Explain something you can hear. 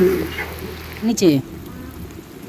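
A woman exclaims loudly close by.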